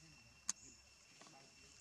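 A young monkey chews and smacks its lips close by.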